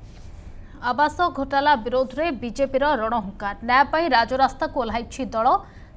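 A young woman reads out the news calmly and clearly into a microphone.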